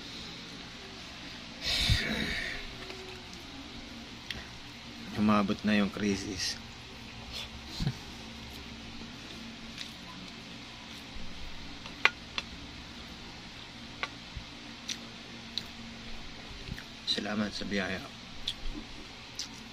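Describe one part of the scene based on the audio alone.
Fingers squish and mix soft rice on a plate.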